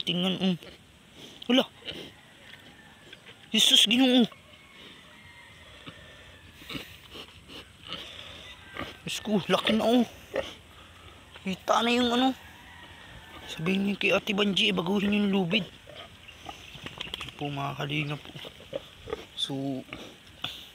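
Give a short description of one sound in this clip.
A pig grunts and squeals close by.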